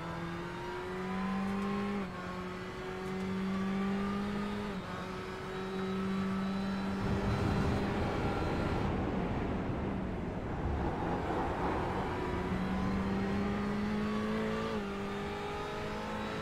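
A racing car engine roars, rising in pitch and dropping sharply at each gear change.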